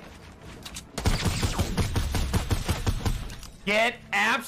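Gunshots fire rapidly in a game.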